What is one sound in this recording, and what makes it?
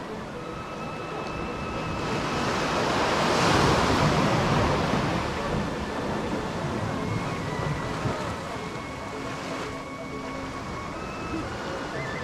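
Waves wash gently onto a sandy shore outdoors.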